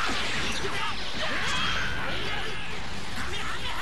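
An energy blast roars with a loud rushing whoosh.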